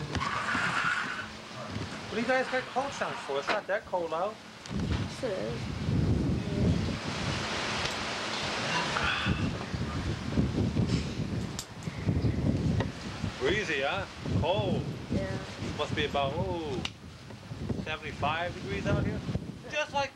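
A middle-aged man talks casually, close to the microphone.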